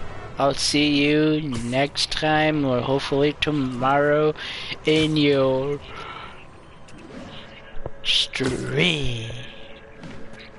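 A man sings loudly close to a microphone.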